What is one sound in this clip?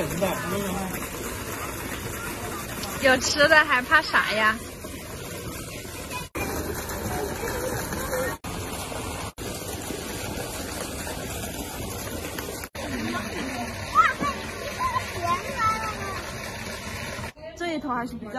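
Fish splash and churn in water as they feed.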